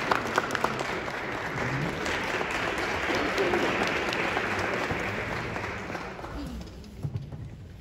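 An audience applauds loudly and the applause fades away.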